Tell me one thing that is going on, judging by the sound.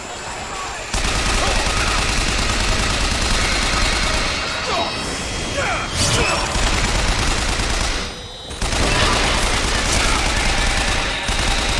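A machine gun fires rapid bursts.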